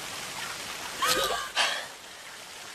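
A woman cries out sharply nearby.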